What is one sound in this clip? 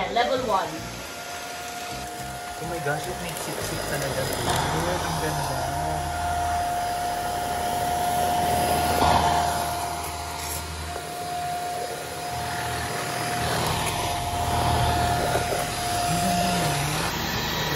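A vacuum cleaner hums steadily as it runs over a wooden floor.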